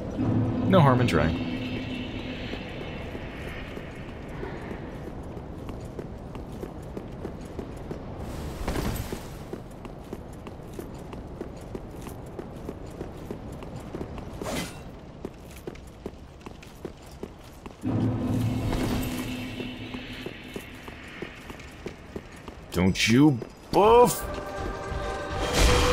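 Armoured footsteps run quickly over stone.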